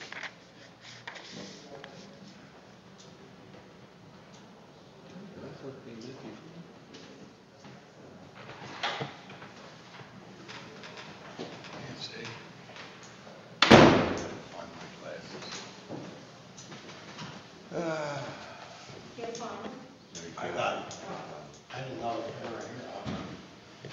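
A man speaks calmly over a microphone in a hall with some echo.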